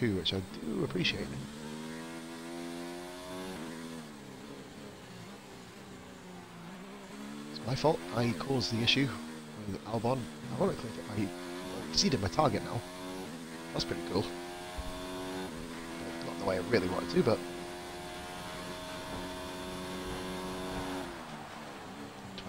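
A racing car engine whines and rises in pitch through the gears.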